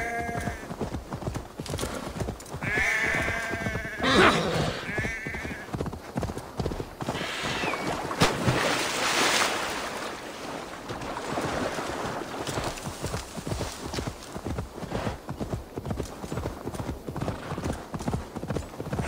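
A horse gallops with quick, rhythmic hoofbeats.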